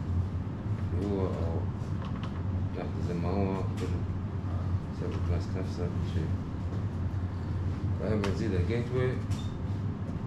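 A man speaks calmly nearby, pausing now and then.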